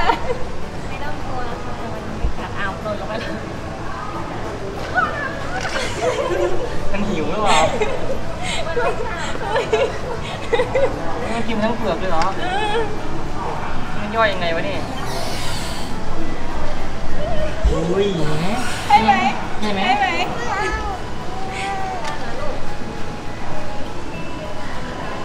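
Children and adults chatter nearby with excitement.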